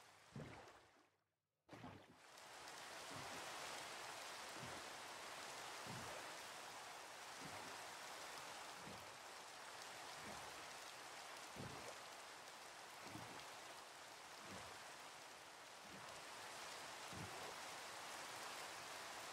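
Oars splash rhythmically in water as a boat is rowed.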